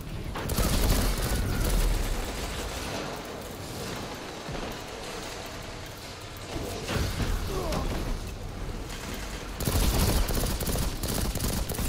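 A rifle fires rapid, loud shots.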